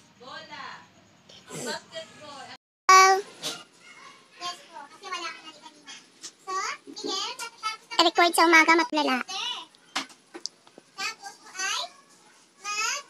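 A toddler babbles and chatters close by.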